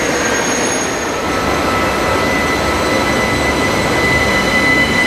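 A locomotive engine hums while standing still.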